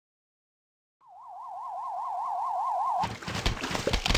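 A warning siren wails rapidly up and down.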